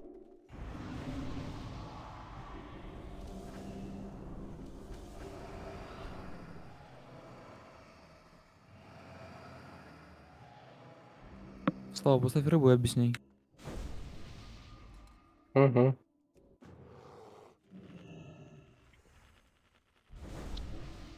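Game spell effects whoosh and chime.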